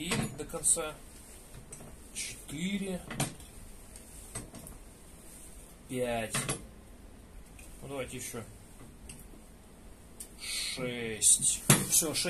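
A floor jack creaks and clicks as its handle is pumped.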